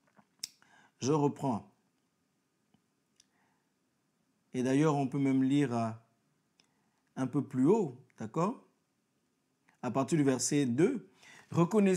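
A young man speaks calmly in short bursts, close to a microphone.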